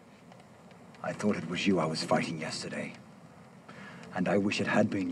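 A man speaks slowly and firmly, close by.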